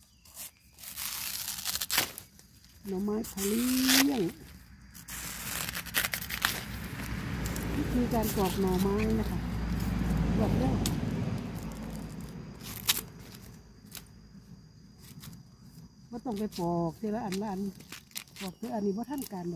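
Stringy plant layers tear and rustle as they are peeled off.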